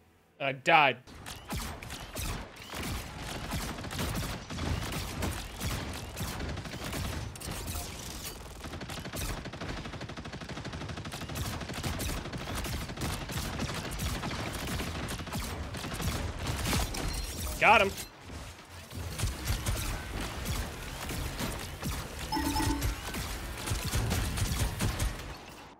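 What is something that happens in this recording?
Rapid energy blasts and explosions boom in a video game.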